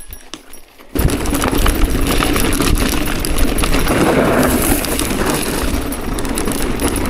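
Bicycle tyres crunch and rumble over a rough dirt trail.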